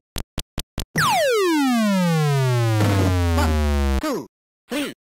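An electronic tone falls steeply as a boxer goes down.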